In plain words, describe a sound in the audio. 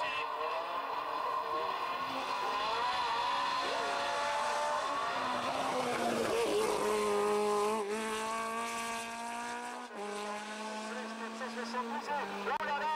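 A racing car engine roars and revs hard as the car speeds past.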